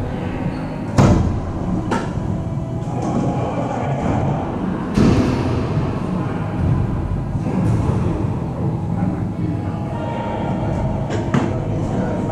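Paddles strike a ball with sharp pops that echo around a hard-walled court.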